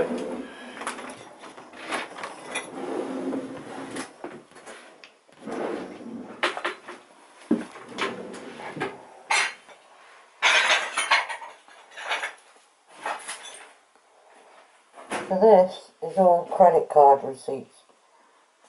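Papers and folders rustle and scrape as a hand shifts them.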